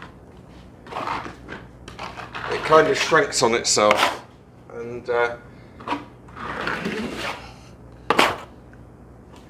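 A trowel scrapes plaster across a wall.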